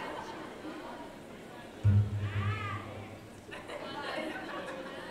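A band plays music live in a large hall.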